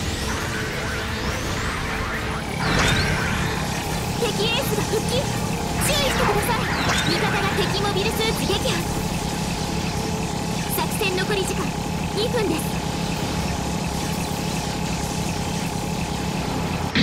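Spaceship thrusters roar steadily.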